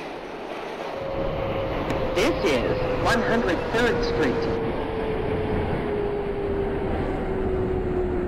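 A train's brakes grind and squeal as it slows.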